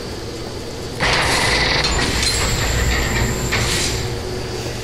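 A heavy metal door swings open with a grinding creak.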